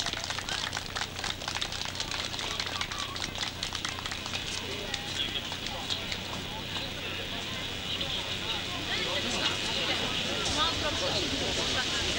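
A crowd murmurs and chatters softly.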